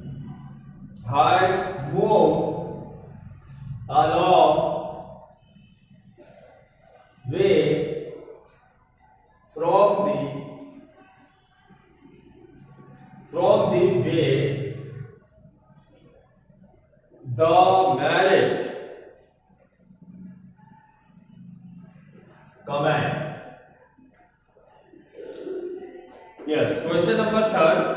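A man speaks slowly and clearly in bursts, as if dictating.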